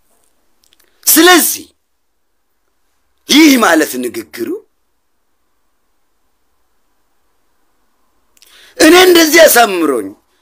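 A young man talks close to a microphone in short, lively bursts.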